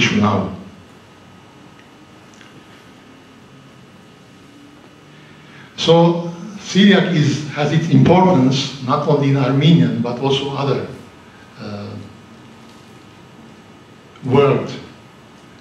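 A middle-aged man speaks calmly into a microphone, with pauses, heard through a loudspeaker in a room.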